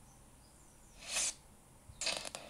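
A game's intro whooshes briefly from a small speaker.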